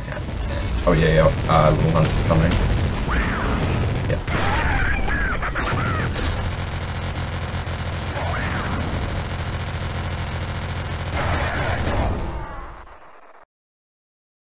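Rapid video game gunfire rattles.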